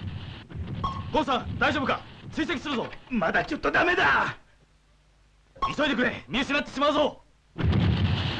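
A young man speaks firmly over a headset radio.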